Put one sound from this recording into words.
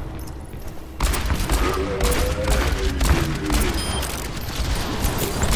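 A revolver fires rapid shots in a video game.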